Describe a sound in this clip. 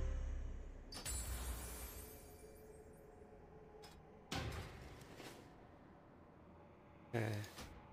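Short game interface chimes sound as menus open and close.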